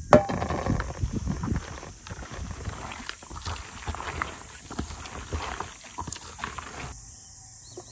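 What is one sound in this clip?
Gloved hands squish and toss wet vegetables in a plastic bowl.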